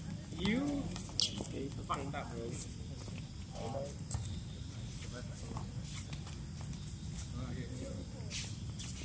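Young players call out to each other across an open outdoor court.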